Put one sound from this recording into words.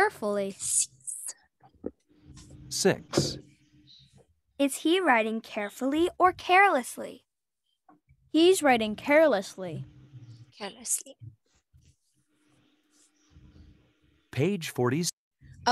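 A young girl repeats phrases over an online call.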